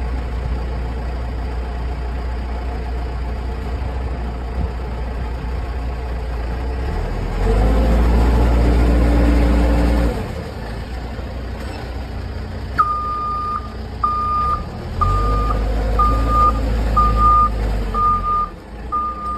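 A diesel engine idles close by with a deep rumble.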